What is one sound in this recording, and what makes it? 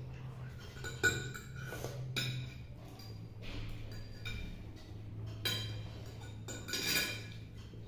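A fork scrapes and clinks on a plate.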